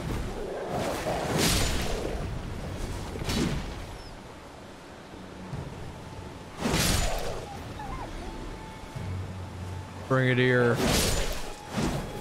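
A sword strikes with sharp clashing blows.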